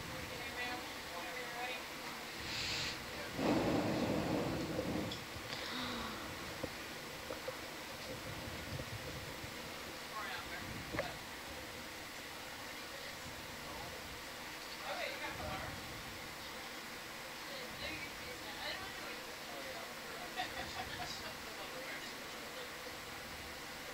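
Muffled water rushes and murmurs all around, as if heard underwater.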